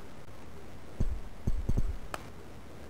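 A ball is kicked with dull thumps.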